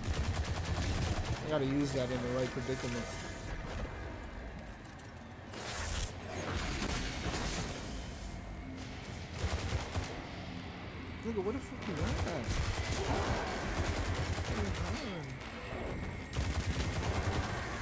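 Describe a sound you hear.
Rapid gunfire cracks from a game.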